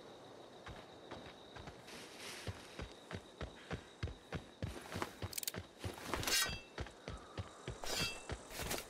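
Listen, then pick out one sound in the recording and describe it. Footsteps thud steadily through grass.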